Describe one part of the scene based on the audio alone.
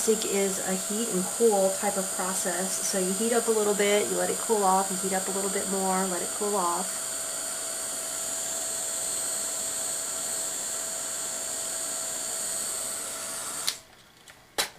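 A small electric fan whirs steadily, then stops.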